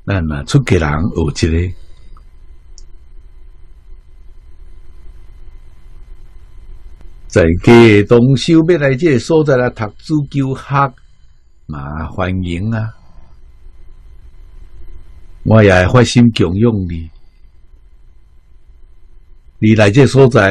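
An elderly man speaks calmly into a close microphone, with long pauses.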